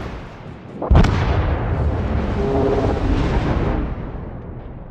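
A huge explosion roars and rumbles on.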